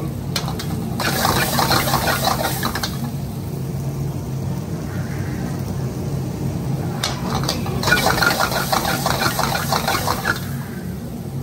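Rice sizzles and crackles in a hot wok.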